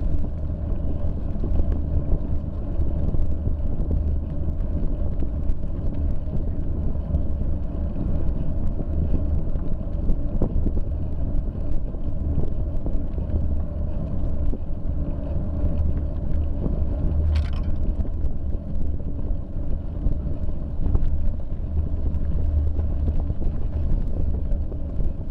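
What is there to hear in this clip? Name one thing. Bicycle tyres roll over a rough road.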